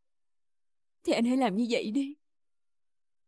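A young woman speaks briefly in a pleading, upset voice close by.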